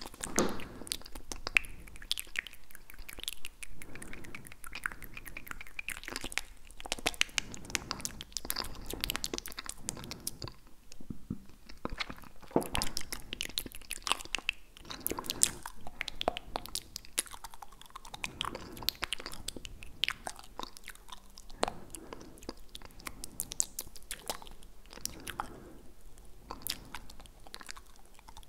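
Mouth clicks and soft lip sounds crackle close to a microphone.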